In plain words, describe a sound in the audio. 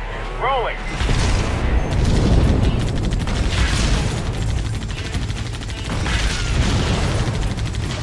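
Explosions rumble low and heavy.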